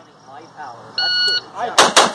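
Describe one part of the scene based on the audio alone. A shot timer beeps once.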